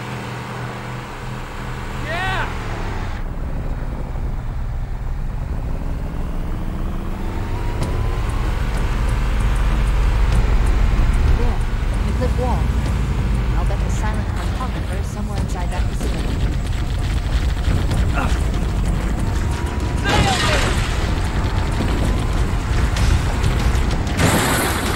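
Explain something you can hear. The engine of an off-road vehicle in a video game rumbles as it drives.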